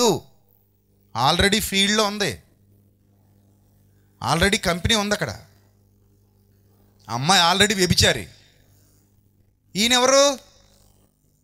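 A man preaches with animation through a microphone, in loud bursts with pauses.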